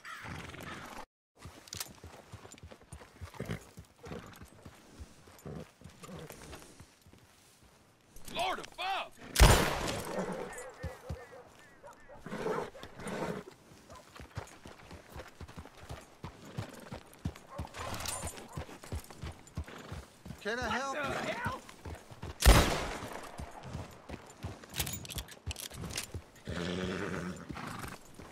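Horse hooves clop slowly on a dirt road.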